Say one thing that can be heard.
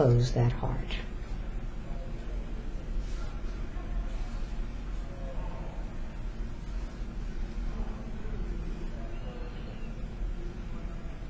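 A young woman breathes softly and slowly in her sleep.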